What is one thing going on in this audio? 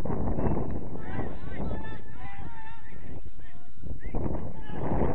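A young man shouts from a distance on the field.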